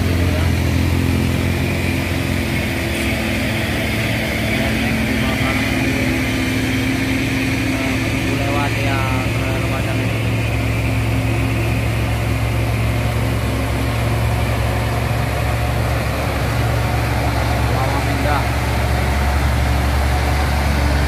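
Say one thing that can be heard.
A heavy truck's diesel engine rumbles loudly close by as the truck slowly approaches and passes.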